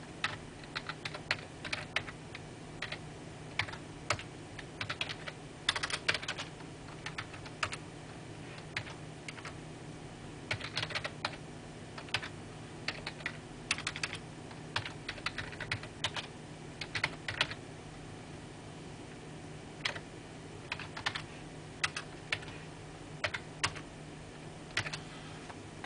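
A computer hums steadily nearby.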